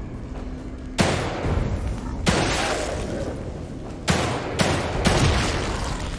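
Pistol shots ring out sharply, one after another.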